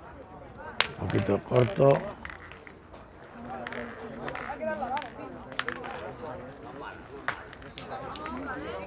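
Boys talk and call out nearby, outdoors.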